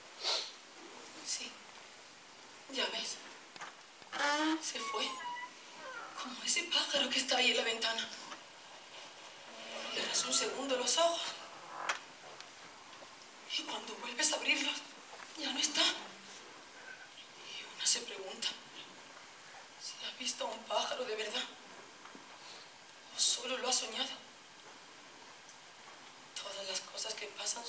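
A woman speaks dramatically through a microphone, in bursts with pauses.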